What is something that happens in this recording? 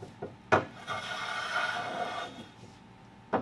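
A hand tool scrapes along wood.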